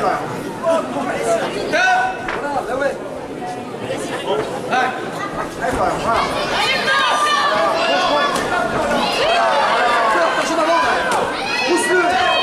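Gloved punches thud against bodies.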